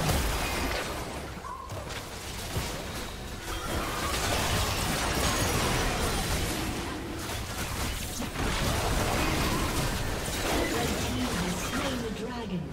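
Fantasy spell effects whoosh, crackle and burst in a chaotic battle.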